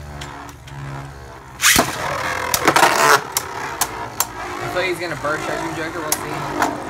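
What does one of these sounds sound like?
A spinning top whirs and hums on a plastic dish.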